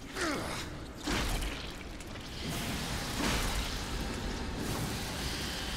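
Magical energy bursts crackle and whoosh.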